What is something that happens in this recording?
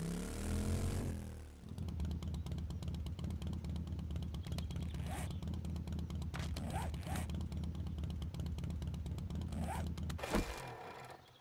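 A motorbike engine idles and revs with a steady rumble.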